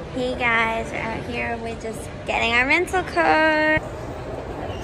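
A young woman talks and squeals excitedly close by.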